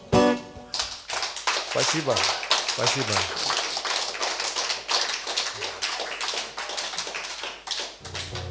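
An acoustic guitar is strummed in quick, bright strokes.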